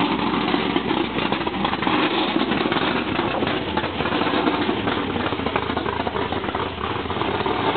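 A car engine idles with a steady rumble close by.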